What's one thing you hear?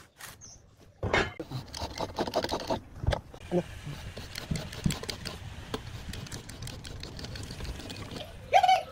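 A marking gauge scrapes along wood.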